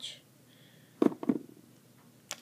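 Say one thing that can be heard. Small toys clack softly as a hand sets them down on a table.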